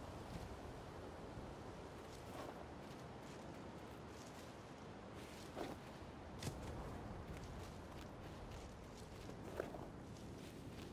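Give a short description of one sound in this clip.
Wind blows steadily through trees outdoors.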